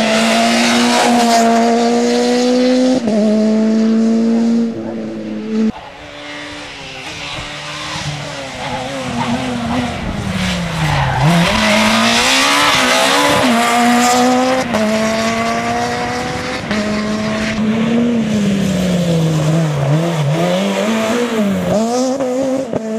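A rally car engine roars loudly as it speeds past, revving up and down through the gears.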